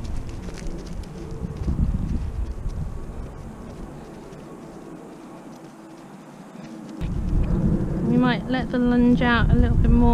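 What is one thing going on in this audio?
A horse's hooves thud softly on grass.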